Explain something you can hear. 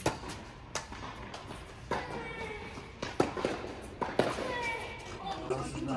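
Tennis balls are struck with rackets, with sharp pops echoing in a large indoor hall.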